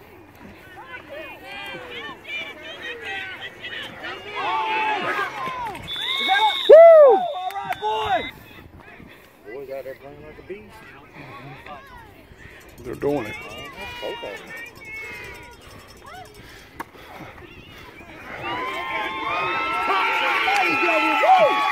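Children shout excitedly outdoors during a game.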